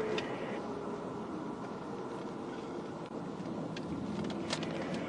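Traffic rushes past steadily on a nearby highway.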